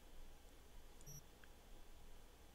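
A short electronic menu beep sounds.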